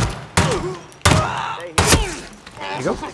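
A silenced pistol fires a few sharp shots close by.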